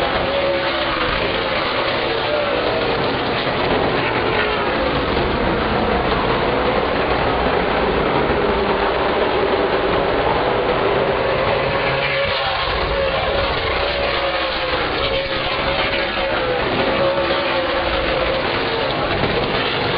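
Car engines whine and rise and fall in pitch as cars pass close by.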